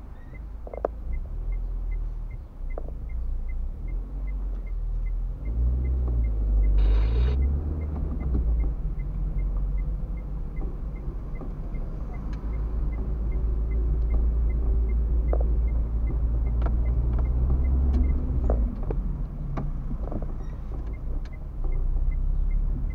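A turn signal ticks evenly inside the car.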